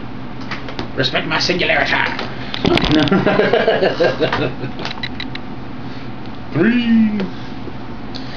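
A second man talks and laughs nearby.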